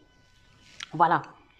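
A young woman speaks briefly close by.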